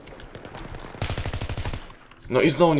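An assault rifle fires a rapid burst.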